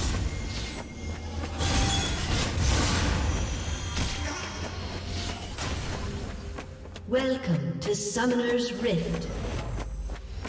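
Magic blasts and sword strikes clash in a fantasy battle.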